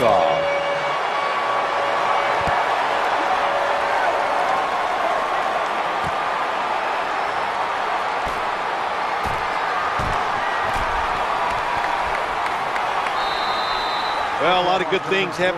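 A large crowd roars steadily in a big stadium.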